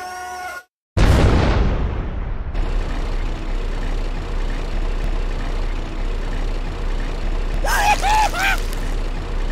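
A heavy tank engine rumbles steadily and clanks along.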